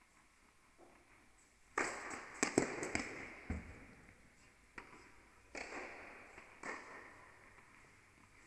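Sneakers squeak and scuff on a hard court.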